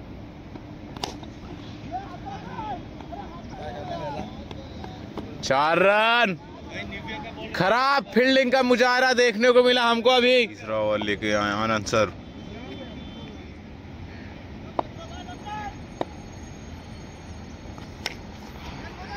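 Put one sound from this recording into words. A cricket bat sharply cracks against a ball outdoors.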